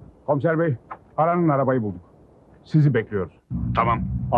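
A middle-aged man speaks into a phone.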